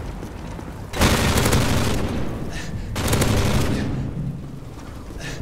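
A loud explosion booms close by and rumbles.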